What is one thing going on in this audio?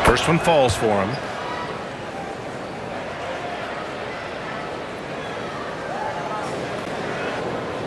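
A large crowd murmurs steadily in an echoing arena.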